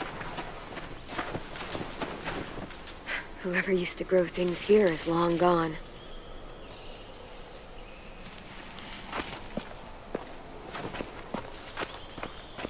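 Footsteps crunch softly through dry grass.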